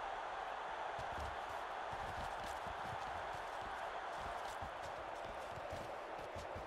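Football players collide with dull thuds.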